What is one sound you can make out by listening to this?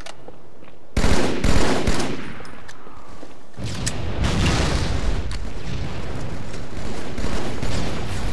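Gunfire and explosions crack and boom in a game.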